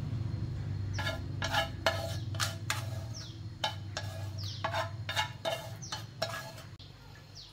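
A metal spatula scrapes and taps against a pan.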